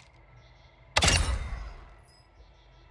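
A sniper rifle fires a single loud, echoing shot.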